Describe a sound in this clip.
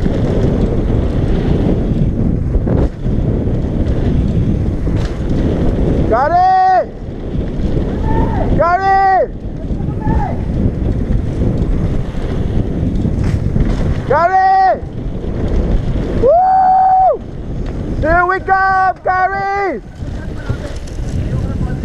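Wind rushes and buffets loudly as a bike speeds downhill.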